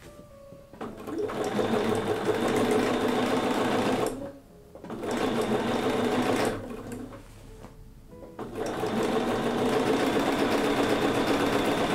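A sewing machine runs fast, stitching in bursts.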